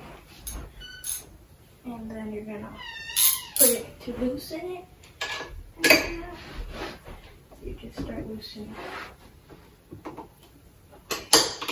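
Hands knock and clink against a metal bike frame.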